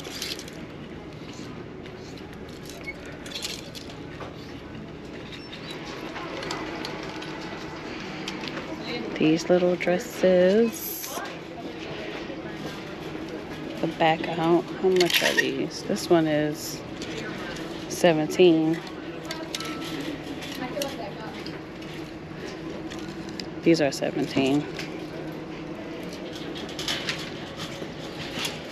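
Clothes hangers click and scrape along a metal rail.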